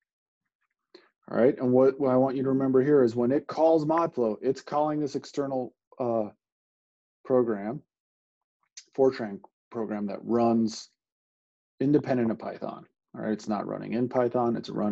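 A man talks calmly into a close microphone, explaining in pauses.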